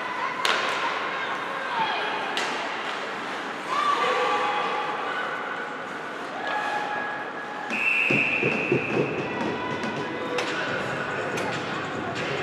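Hockey sticks click and clack against a puck.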